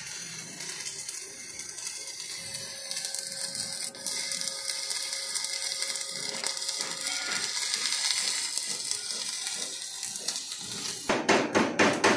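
An arc welder crackles and hisses steadily.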